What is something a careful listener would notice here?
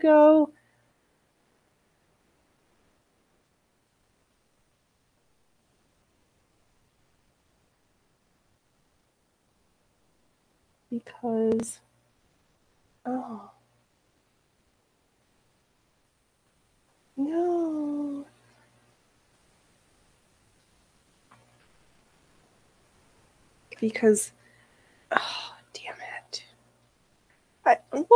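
A young woman speaks calmly in short phrases close to a microphone, with long pauses.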